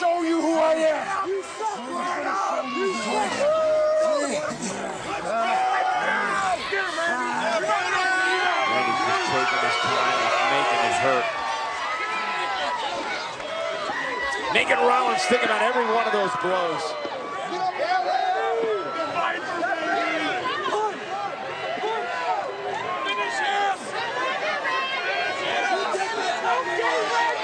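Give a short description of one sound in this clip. A large crowd cheers and shouts loudly in a big echoing arena.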